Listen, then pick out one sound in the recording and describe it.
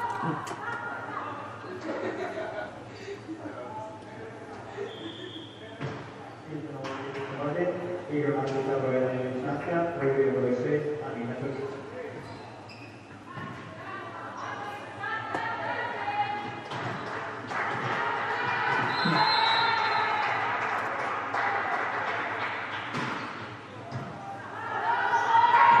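A volleyball is struck with sharp smacks that echo in a large hall.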